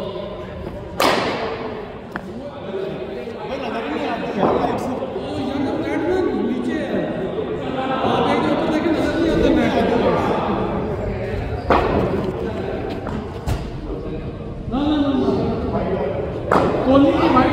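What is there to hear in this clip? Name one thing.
A cricket bat sharply cracks against a ball.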